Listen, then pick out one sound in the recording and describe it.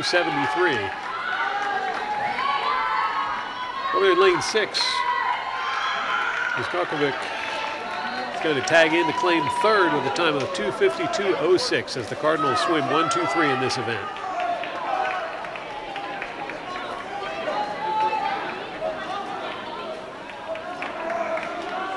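Swimmers splash through the water.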